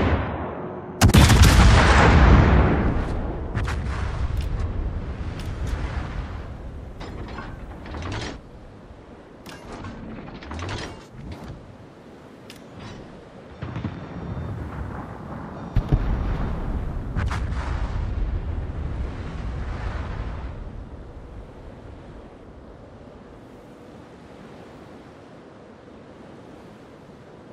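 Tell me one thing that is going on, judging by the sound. Water rushes steadily along a ship's hull.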